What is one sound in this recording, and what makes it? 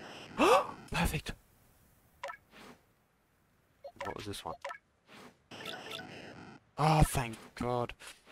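Short electronic menu blips sound as selections change.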